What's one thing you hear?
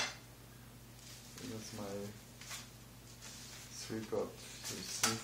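A sheet of paper rustles and crinkles as it is lifted and moved.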